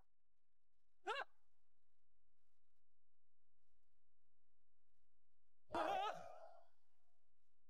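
A man groans weakly.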